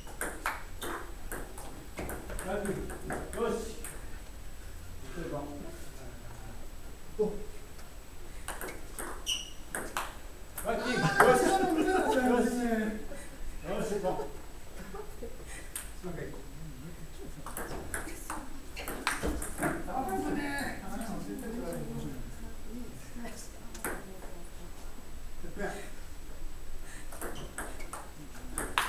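A ping-pong ball clicks sharply back and forth off paddles and a table.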